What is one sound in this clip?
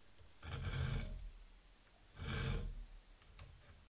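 A metal file rasps across steel in short strokes.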